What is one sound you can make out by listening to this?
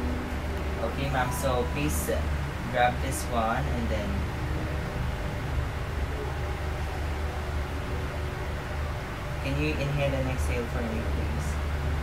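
A young man speaks softly nearby.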